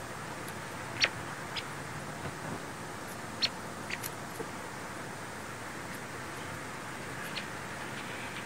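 A small bird pecks lightly at seeds on a stump.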